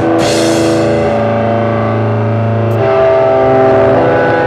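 A drummer plays a drum kit, crashing a cymbal.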